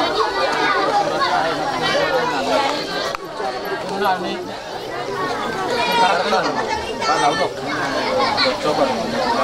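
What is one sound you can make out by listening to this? A crowd of men and women chatters loudly nearby outdoors.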